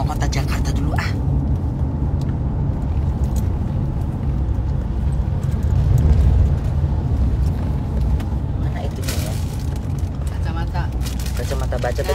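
A woman speaks close by, in short bursts.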